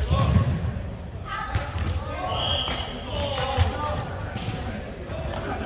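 Young adults call out and chat in a large echoing hall.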